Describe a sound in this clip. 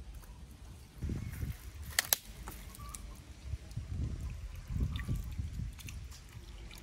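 An eel thrashes and squelches in wet mud.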